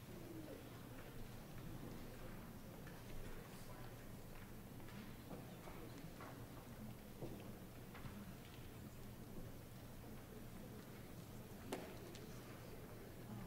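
An audience rustles and shifts quietly in their seats.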